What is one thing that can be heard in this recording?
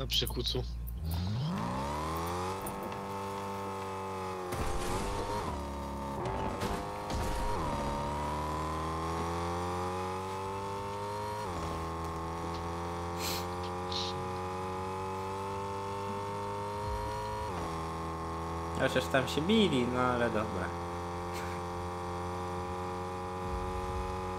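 A game car engine hums and revs steadily.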